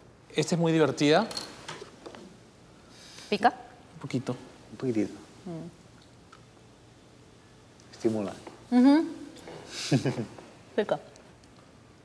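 A woman speaks calmly and quietly nearby.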